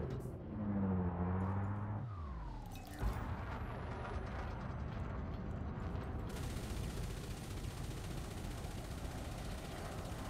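A laser beam fires with a steady buzzing hum.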